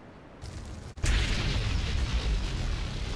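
A fire bursts into flames with a loud whoosh and roars.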